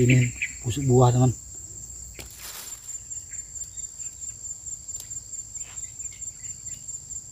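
A steady high insect drone hums outdoors.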